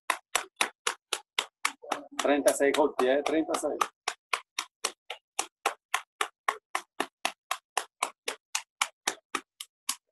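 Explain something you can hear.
A man briskly pats his arms and chest with his hands in a steady rhythm.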